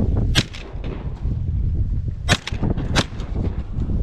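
A shotgun fires several loud, sharp shots outdoors.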